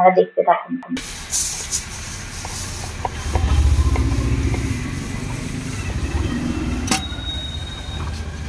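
A knife taps and scrapes on a wooden board.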